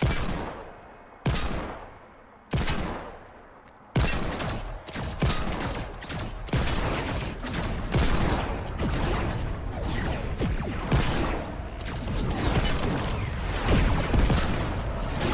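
Gunshots ring out again and again, each with a booming echo.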